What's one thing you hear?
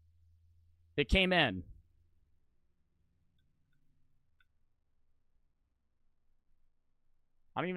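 A young man speaks close to a microphone, with animation.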